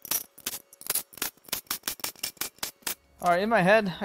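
An impact wrench rattles in quick bursts against a bolt.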